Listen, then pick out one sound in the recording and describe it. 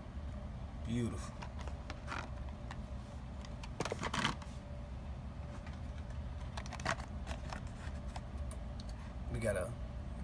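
A plastic-and-card toy package crackles as it is handled.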